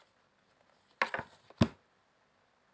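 A card slaps down onto a table.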